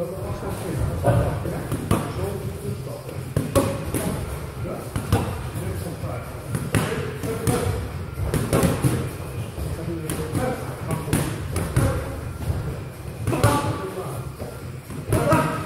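Boxing gloves thud sharply against each other in quick exchanges, echoing in a large hall.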